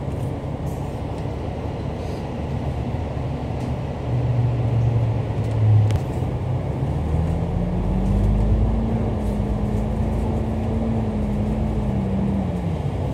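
A bus engine rumbles close by and revs up as the bus pulls away.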